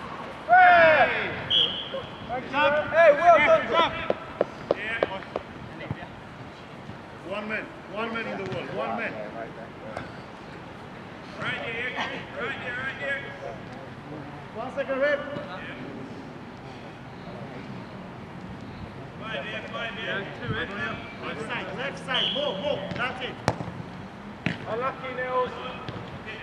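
Men shout across an open outdoor pitch.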